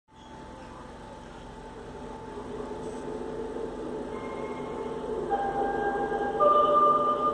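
An elderly man sings through a microphone, his voice growing louder.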